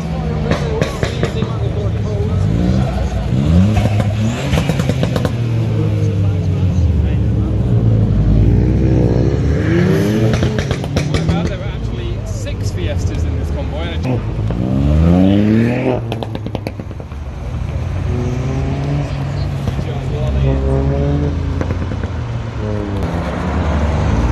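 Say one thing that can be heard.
Car engines rumble and rev loudly as cars pass close by one after another.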